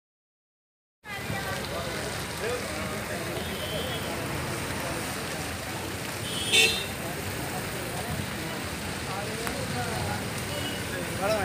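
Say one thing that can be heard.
Cars drive slowly past along a street.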